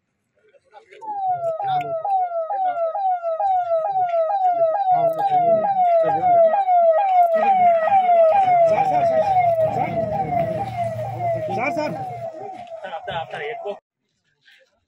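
A siren wails rapidly and repeatedly as a convoy approaches.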